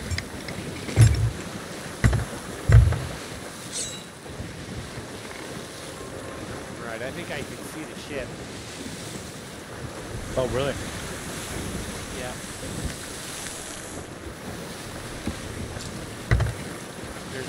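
Waves slam heavily against a ship's hull with deep thuds.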